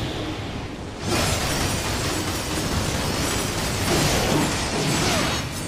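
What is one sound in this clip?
A heavy blade slashes and clashes against creatures.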